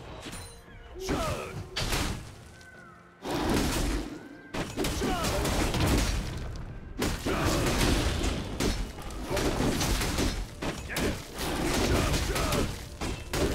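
Fantasy battle sound effects crash and whoosh as spells and blows land.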